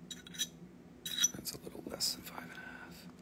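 Small metal pieces clink and tap as a hand handles them.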